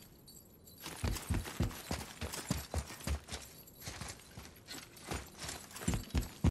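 Heavy footsteps thud and crunch quickly on snow and metal grating.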